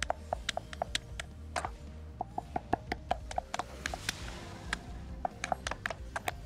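Magic spells chime and burst in quick succession during a fight.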